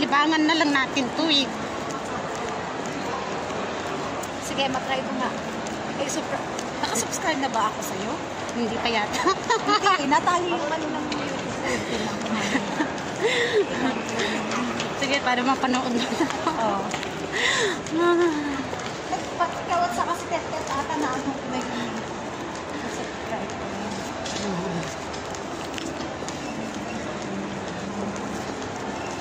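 Voices of several people talk and murmur in a busy, echoing indoor space.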